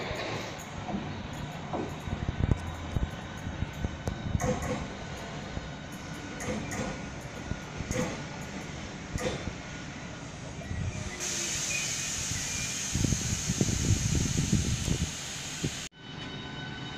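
An electric train rolls into a station, wheels rumbling on the rails.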